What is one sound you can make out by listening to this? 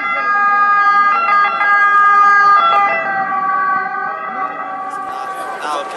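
An ambulance siren wails close by.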